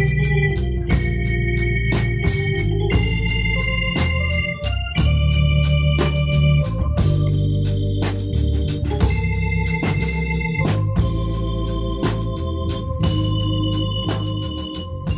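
An electric keyboard plays chords and melody.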